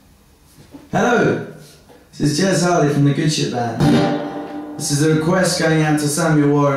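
A guitar is strummed loudly.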